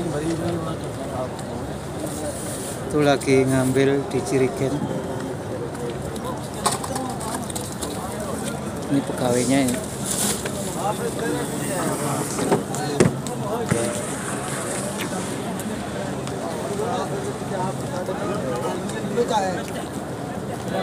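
A crowd murmurs and talks nearby, outdoors.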